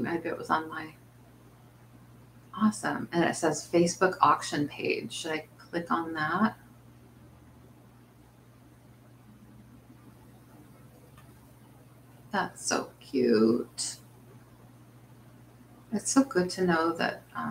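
A middle-aged woman talks calmly into a nearby microphone, in short bursts with pauses.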